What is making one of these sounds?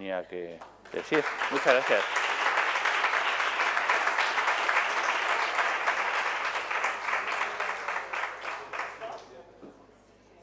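An audience applauds loudly, then the clapping fades.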